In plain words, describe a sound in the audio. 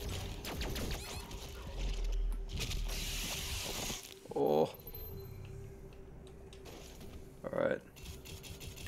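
A monster growls and snarls.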